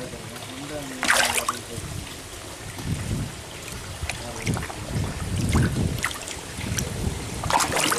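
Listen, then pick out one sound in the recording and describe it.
Fish splash and thrash at the water's surface close by.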